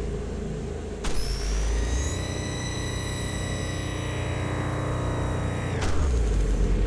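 A beam weapon fires with a high, ringing hum.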